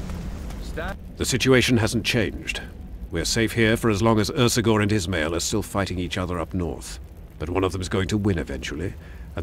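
A middle-aged man speaks calmly in a deep voice.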